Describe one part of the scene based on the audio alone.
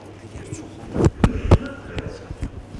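A microphone bumps and thuds as it is handled.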